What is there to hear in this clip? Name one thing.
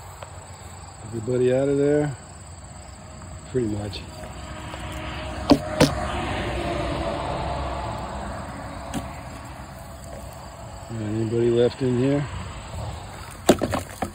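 Bees buzz inside a plastic bottle.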